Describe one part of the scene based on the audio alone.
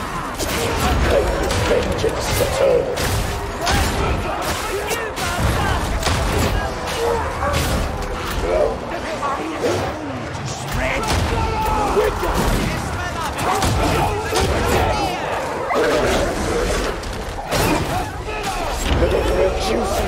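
Guns fire in rapid bursts.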